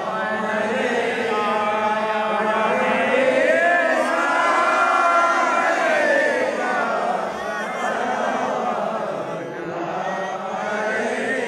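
A group of men chant prayers together in long drawn-out tones.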